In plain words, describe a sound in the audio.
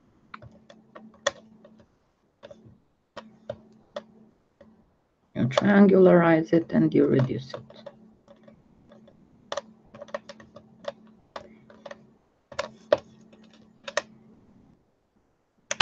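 Fingernails tap and click against a hard surface.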